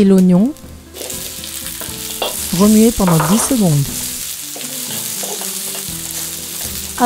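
Onions hiss and sizzle in a hot pan.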